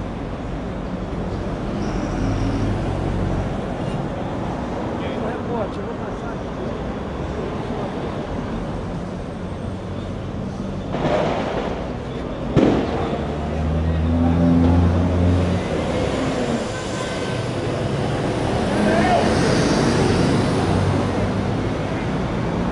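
Traffic hums steadily on a street close by.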